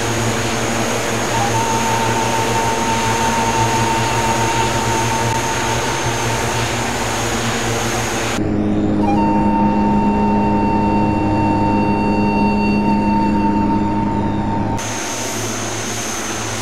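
Twin propeller engines drone steadily as an aircraft flies.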